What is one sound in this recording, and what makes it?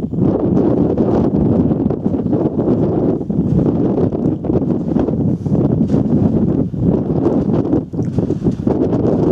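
Strong wind roars and buffets loudly outdoors.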